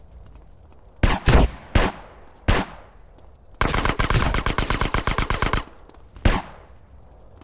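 Gunshots fire in single loud bangs.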